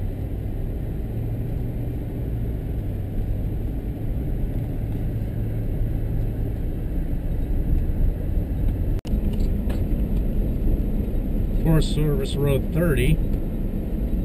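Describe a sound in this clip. Tyres crunch and rumble over a gravel road.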